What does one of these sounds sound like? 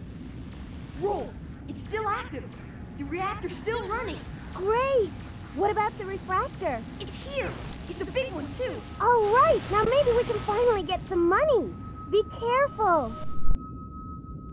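A young man speaks with animation.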